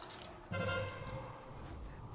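Game sound chimes ring out sharply.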